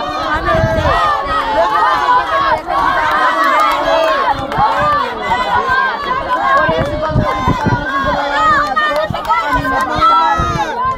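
A crowd of people shout and cheer excitedly close by.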